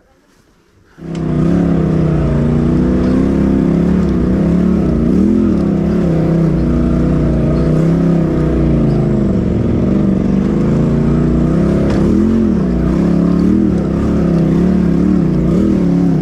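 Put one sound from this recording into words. An engine rumbles and revs as a vehicle climbs over rocks.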